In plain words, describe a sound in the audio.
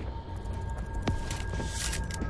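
A short metallic click sounds as a crate is opened.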